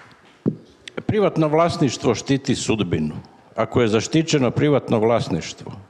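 A middle-aged man speaks calmly into a microphone through a loudspeaker.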